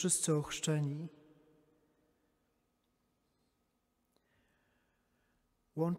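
A man sings through a microphone in a large echoing hall.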